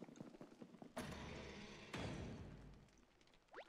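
A heavy door creaks and swings open.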